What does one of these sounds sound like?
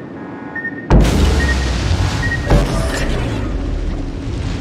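A shell bursts in a loud, booming blast nearby.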